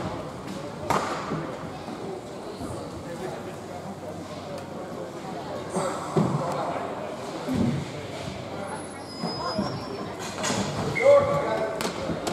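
Roller skate wheels roll and scrape on a hard floor in a large echoing hall.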